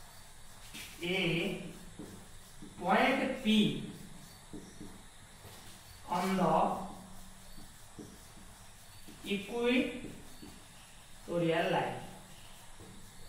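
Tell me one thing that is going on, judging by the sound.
A young man speaks slowly in short phrases, close by.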